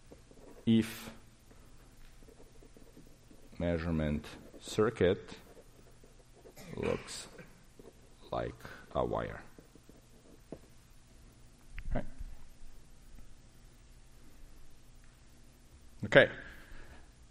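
A man speaks calmly in short phrases through a microphone in a large room.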